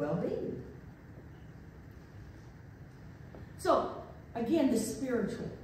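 An elderly woman speaks calmly into a microphone in an echoing room.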